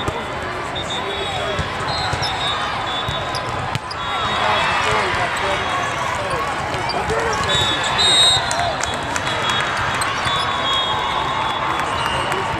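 A crowd chatters and cheers throughout a large echoing hall.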